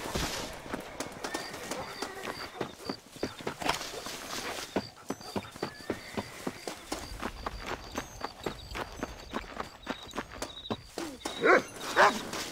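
Footsteps run quickly on dirt.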